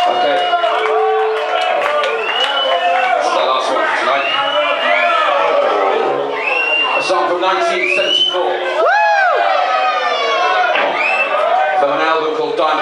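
A man sings loudly into a microphone through a loudspeaker system.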